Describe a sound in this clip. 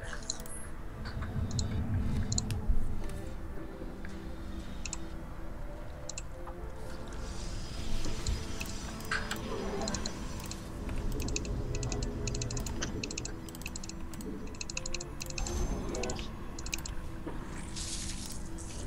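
Short electronic blips and clicks from a video game sound again and again.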